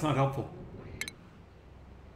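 A short electronic interface chime sounds.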